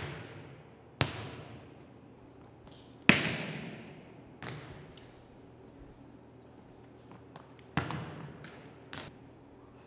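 A volleyball bounces on a wooden floor, echoing in a large hall.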